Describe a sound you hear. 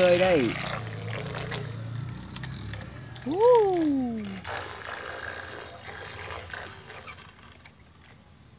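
A small motorboat engine buzzes over the water and fades into the distance.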